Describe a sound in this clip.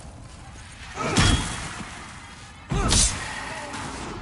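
Heavy blows land with loud booming impacts.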